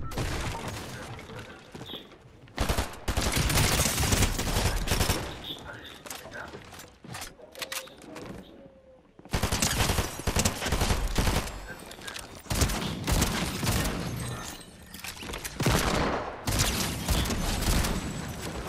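Rapid gunfire bursts ring out at close range.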